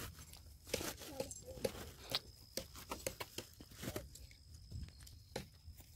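A plastic sack rustles as it is dragged along.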